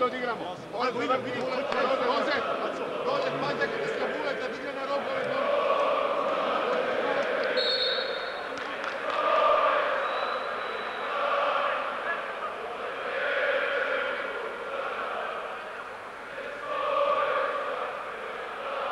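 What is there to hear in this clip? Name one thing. A large crowd chants and cheers in an echoing arena.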